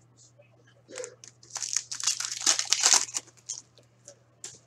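A foil card pack wrapper crinkles and tears.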